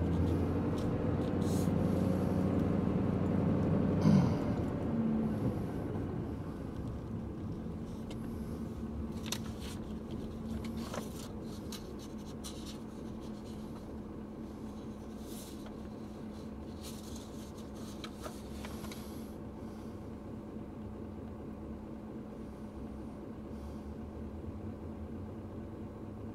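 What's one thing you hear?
A car engine hums steadily from inside the car, then settles to a quiet idle.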